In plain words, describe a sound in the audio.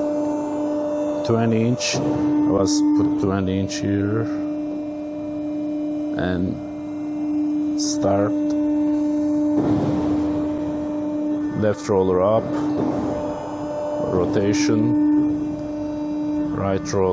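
A machine's motor hums steadily.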